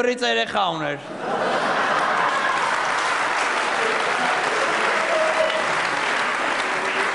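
An audience claps and cheers loudly.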